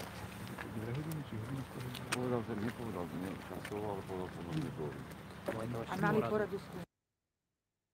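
Men talk close by, outdoors.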